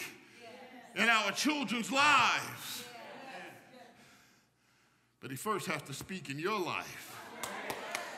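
A man speaks with animation through a microphone in a reverberant hall.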